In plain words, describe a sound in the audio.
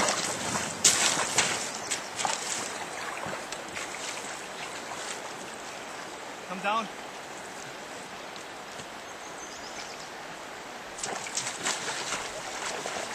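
Water splashes as a man wades with a landing net.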